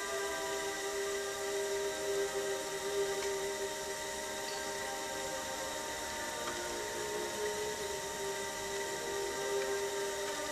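A pottery wheel motor hums steadily.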